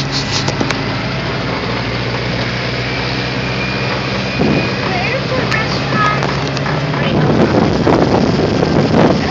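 A small plane's engine drones steadily as the plane taxis.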